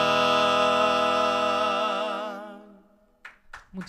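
An acoustic guitar strums softly.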